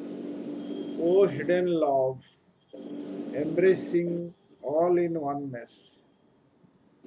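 An older man speaks calmly through an online call.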